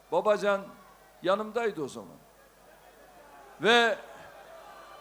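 An elderly man speaks forcefully into a microphone, heard through loudspeakers.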